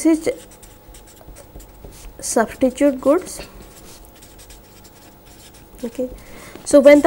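A felt-tip marker squeaks and scratches softly across paper.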